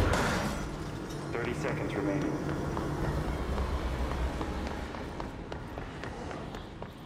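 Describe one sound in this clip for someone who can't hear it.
Footsteps clatter quickly on a metal walkway.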